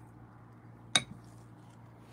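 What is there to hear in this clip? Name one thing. A ceramic cup clinks down onto a hard tray.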